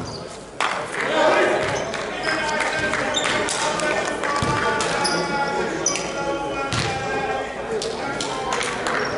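Men shout and call out across the court.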